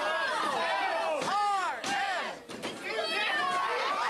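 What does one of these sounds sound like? A body thuds onto a wrestling ring mat.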